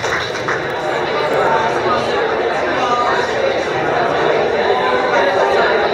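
A crowd of people chatters in a large echoing room.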